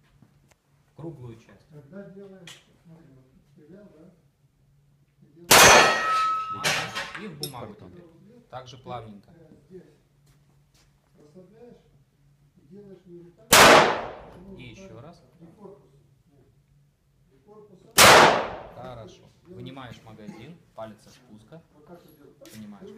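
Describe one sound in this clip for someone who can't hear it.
A man speaks calmly nearby between the shots.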